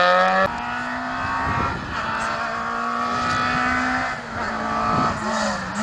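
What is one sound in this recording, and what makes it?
A car engine revs hard in the distance, its pitch rising and dropping with gear changes.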